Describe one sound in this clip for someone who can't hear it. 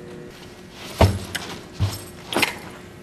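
A bag drops onto a carpeted floor with a soft thud.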